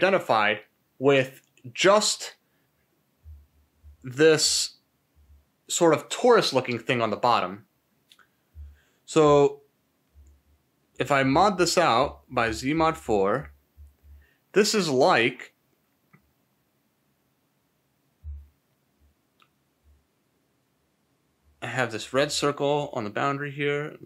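A man talks calmly and close into a microphone, in short bursts with pauses.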